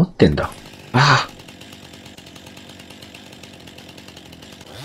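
A chainsaw starts and idles with a steady rattling hum.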